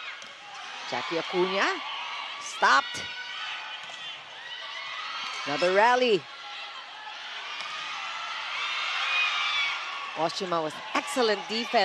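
A volleyball is struck hard with sharp smacks.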